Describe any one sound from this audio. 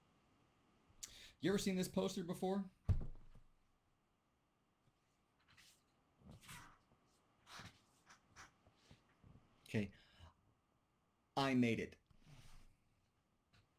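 A middle-aged man speaks calmly through an online call, in short bursts with pauses.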